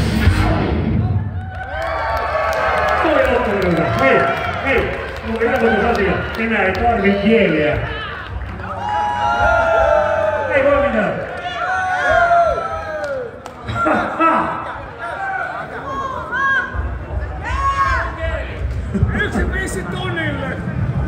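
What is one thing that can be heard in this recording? A man sings loudly into a microphone over a loudspeaker system.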